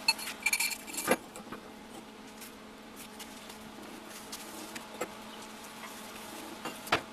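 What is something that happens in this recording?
Steel pipes clank against a metal frame.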